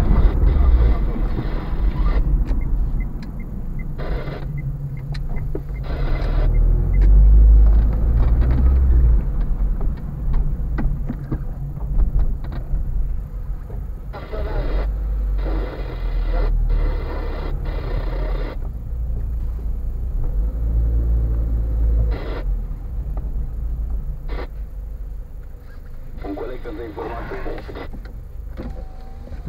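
A car engine hums low and steady while driving slowly.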